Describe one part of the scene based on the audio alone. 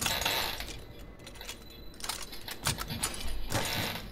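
A metal tool clicks and pops a lock open.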